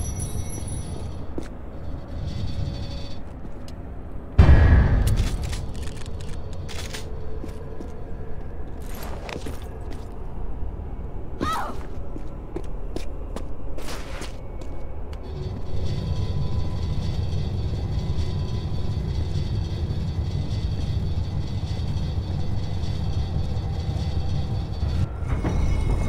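Footsteps run on stone.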